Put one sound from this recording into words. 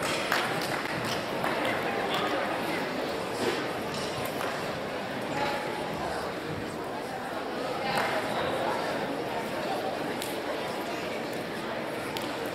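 A large mixed choir sings together in an echoing gym.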